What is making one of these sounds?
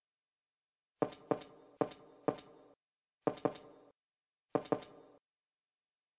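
Short game chimes sound one after another as items are picked.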